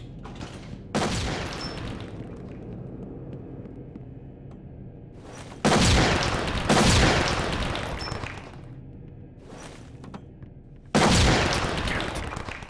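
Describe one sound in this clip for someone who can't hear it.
Loud blasts boom and echo, one after another.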